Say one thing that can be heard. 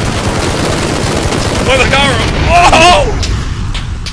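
A vehicle explodes with a loud boom.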